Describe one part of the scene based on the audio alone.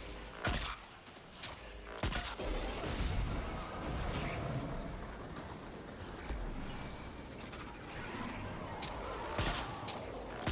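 Gunshots crack in sharp single bursts.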